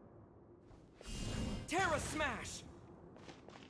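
A bright magical whoosh shimmers and rings out.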